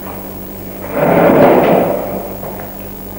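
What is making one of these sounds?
A wooden chair scrapes across a hard floor.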